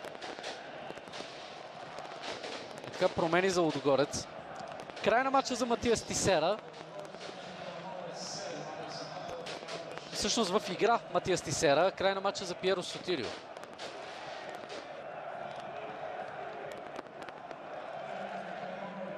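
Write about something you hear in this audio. A large crowd chants and cheers steadily in an open stadium.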